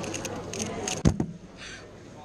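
Hands slap down on a timer pad.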